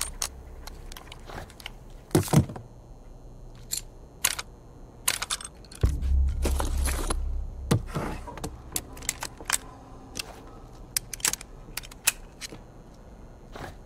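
Metal parts of a gun click and clack sharply.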